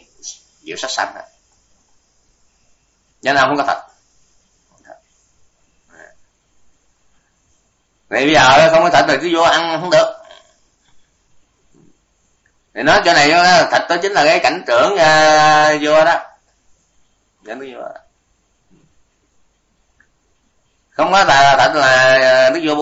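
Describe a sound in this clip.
An elderly man speaks calmly in short phrases, close to a microphone.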